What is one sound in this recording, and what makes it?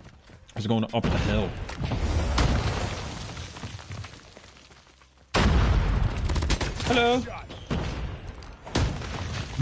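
Gunfire from a game bursts loudly.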